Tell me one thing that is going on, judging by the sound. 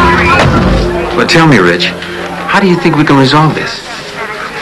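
A middle-aged man speaks into a phone.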